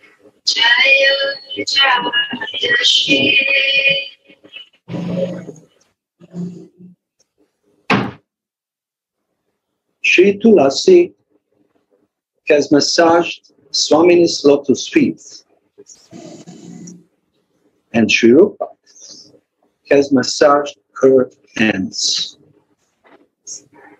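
An elderly man speaks calmly, in short phrases with pauses, heard through an online call.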